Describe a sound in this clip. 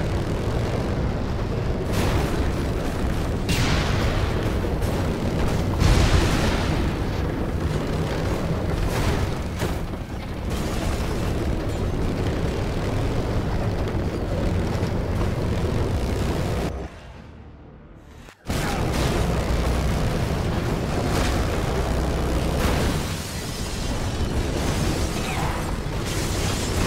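A vehicle engine roars steadily.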